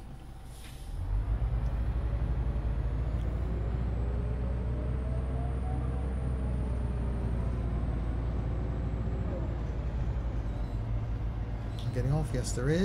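A bus engine rumbles steadily and revs as the bus pulls away and turns.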